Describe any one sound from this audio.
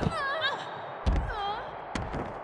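A body slams onto a hard floor.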